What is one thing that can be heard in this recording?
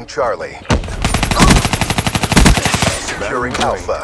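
An automatic rifle fires a rapid burst of shots.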